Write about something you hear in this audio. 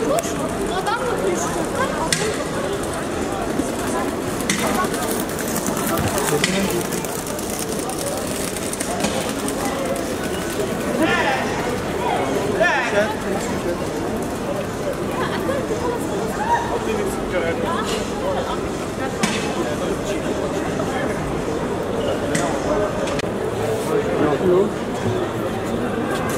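A busy crowd of men and women chatters all around, close by.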